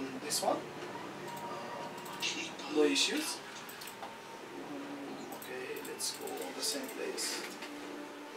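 Keyboard keys click and clatter.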